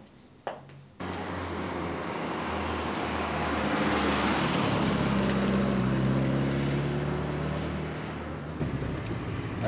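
A car drives past on a street.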